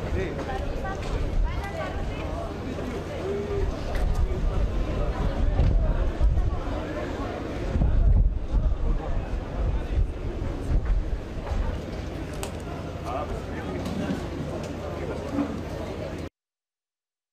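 A large crowd murmurs and chants outdoors.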